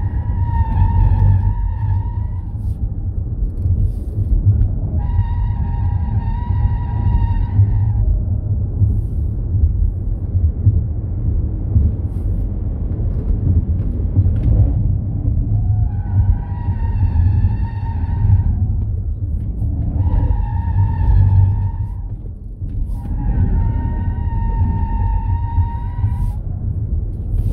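A car engine roars loudly and steadily.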